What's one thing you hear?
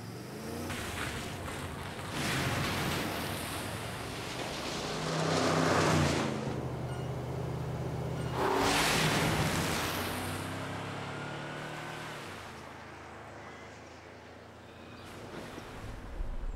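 A vehicle drives past on gravel with a rushing roar.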